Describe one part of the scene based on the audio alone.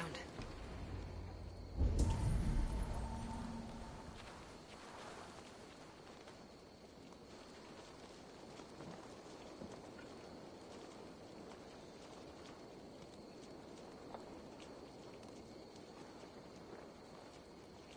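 Leaves rustle as someone creeps through dense bushes.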